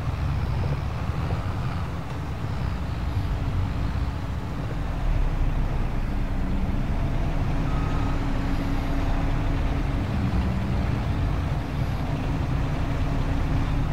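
A forage harvester engine drones nearby.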